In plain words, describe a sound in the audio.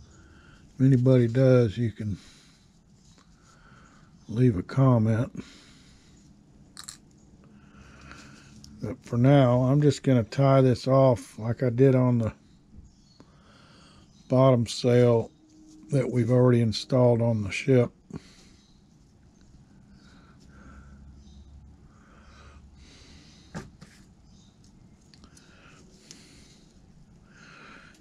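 Cloth rustles softly as it is handled.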